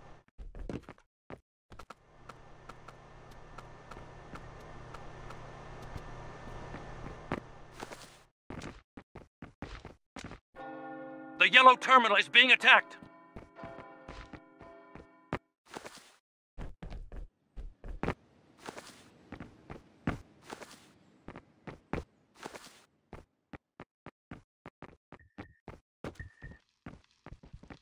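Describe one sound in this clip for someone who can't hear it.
Soft footsteps tap quickly on hard ground.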